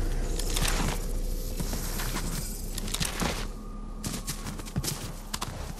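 Quick footsteps run over gravel and grass.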